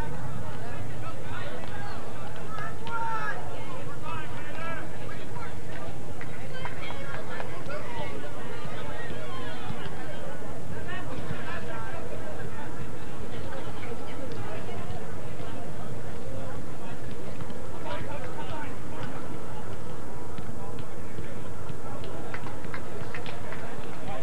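Young players and onlookers shout and call out across an open outdoor field, heard from a distance.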